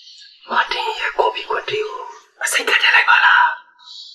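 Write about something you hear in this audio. A man whispers close by.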